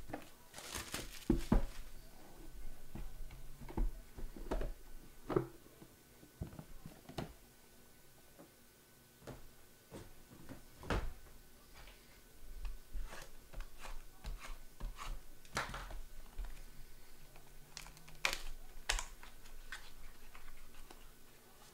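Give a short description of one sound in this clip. Plastic and card packaging rustles and clicks as hands handle it.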